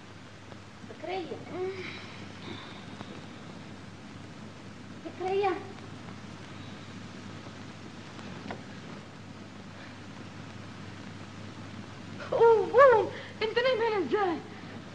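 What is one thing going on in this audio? A young woman cries out and speaks in agitated bursts, close by.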